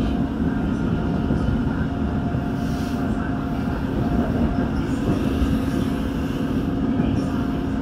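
An electric commuter train rumbles along the track at speed, heard from inside a carriage.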